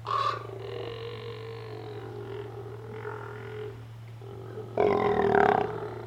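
Sea lions bark and groan loudly close by.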